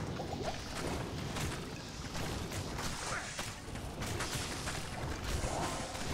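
Spells crackle and blows clash in a video game's battle.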